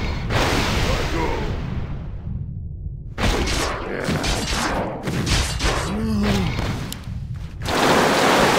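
Weapons clash and strike repeatedly in a fight.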